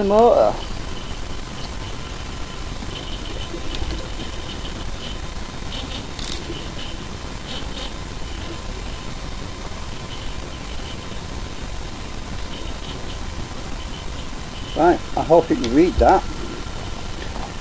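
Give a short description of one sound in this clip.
A small metal canister clicks and scrapes softly as fingers handle it.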